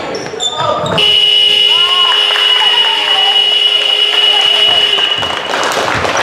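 A referee blows a long, steady whistle.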